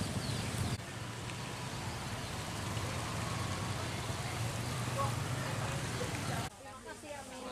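Motorbike engines hum steadily.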